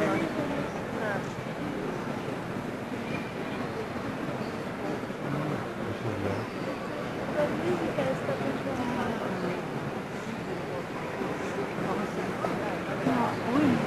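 A crowd murmurs and talks quietly, echoing through a large hall.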